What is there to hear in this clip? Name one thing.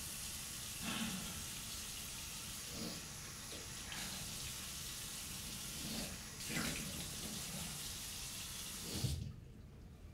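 A woman splashes water on her face.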